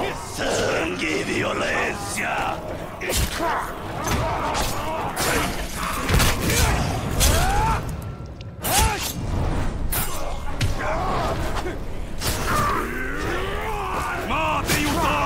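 Swords clash and strike in a fight, with sharp hits.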